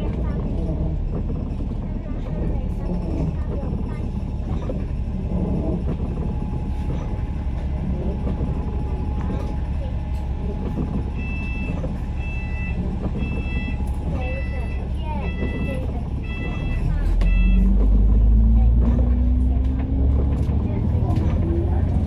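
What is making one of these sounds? A bus engine rumbles steadily from close by.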